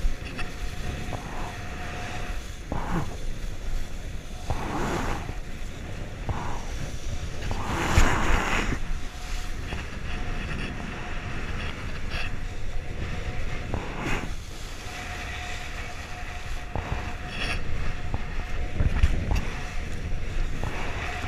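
Choppy seawater splashes against a kiteboard.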